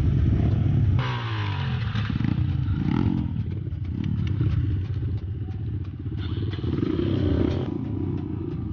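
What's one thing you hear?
A dirt bike engine revs up and down nearby.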